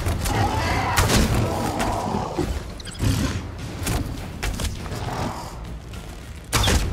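A bow twangs sharply as arrows are loosed, again and again.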